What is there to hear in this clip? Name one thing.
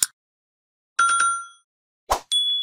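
A small bell chimes brightly.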